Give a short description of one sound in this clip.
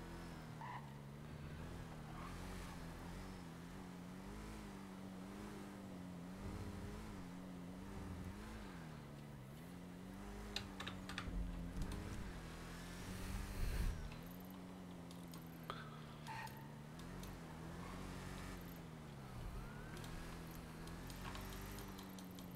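A car engine hums steadily, its pitch rising and falling as it drives.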